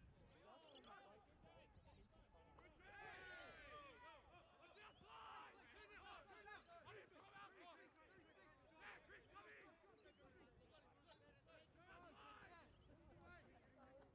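Young players shout to each other far off on an open field.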